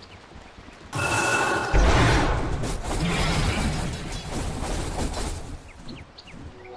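Magic spells crackle and whoosh in a fight.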